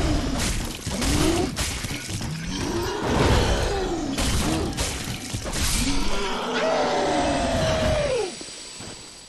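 A huge beast roars and groans loudly.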